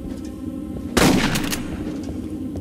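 A gunshot blasts once and rings out briefly.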